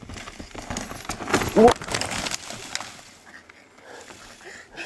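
A bicycle crashes onto the ground with a clatter.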